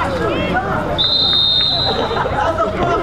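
A referee's whistle blows once, briefly.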